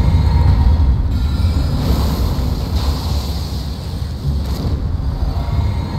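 Magic spells burst with a crackling whoosh.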